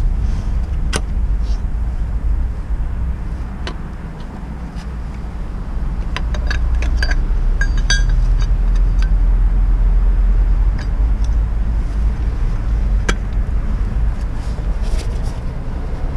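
Metal parts clink and tap close by.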